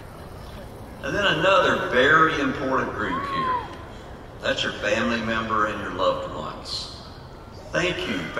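A man speaks through a loudspeaker at a distance.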